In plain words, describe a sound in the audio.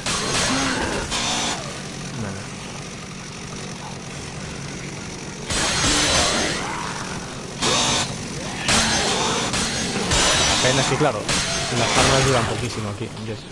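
A chainsaw roars loudly in bursts.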